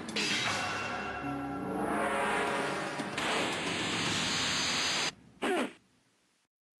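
Punches land with heavy, booming thuds.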